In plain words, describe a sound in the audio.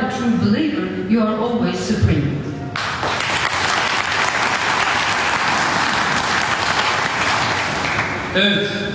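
A middle-aged man speaks formally into a microphone.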